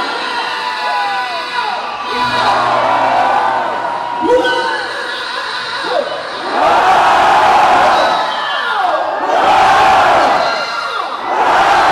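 A man sings loudly into a microphone over a loud sound system.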